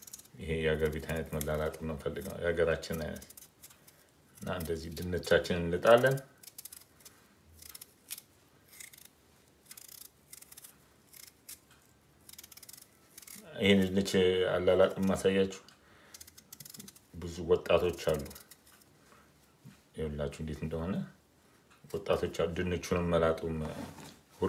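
A peeler scrapes the skin off a potato in short strokes.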